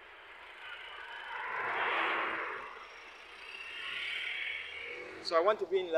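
A motorcycle passes by on the road.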